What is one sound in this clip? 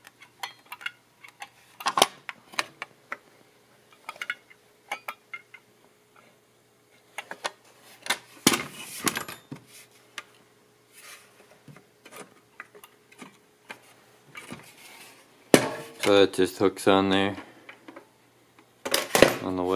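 Metal parts clink and rattle as they are handled.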